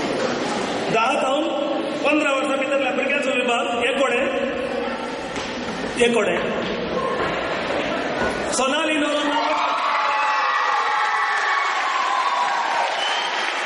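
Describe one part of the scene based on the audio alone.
A man speaks through a loudspeaker in an echoing hall.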